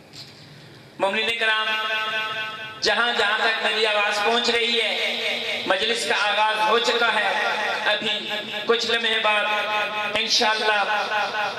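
A man recites loudly and melodically into a microphone, heard through a loudspeaker.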